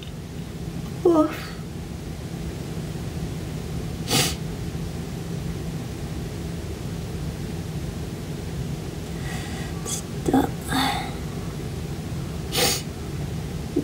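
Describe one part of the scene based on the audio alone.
A young woman sobs and sniffles close by.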